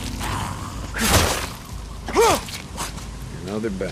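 Heavy blows thud in a close scuffle.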